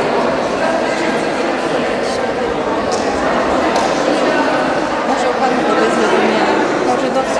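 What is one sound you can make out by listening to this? Children and adults chatter in a large echoing hall.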